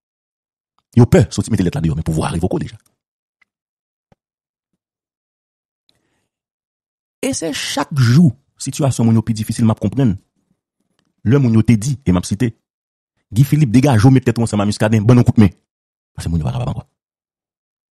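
A man speaks with animation into a headset microphone, in short bursts with pauses.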